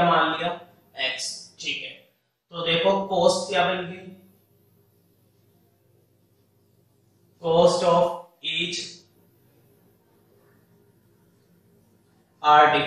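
A man speaks calmly and clearly, in short phrases with pauses, close to a microphone.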